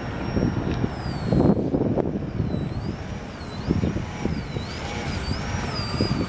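The electric motors of a radio-controlled aircraft whine, rising and falling in pitch.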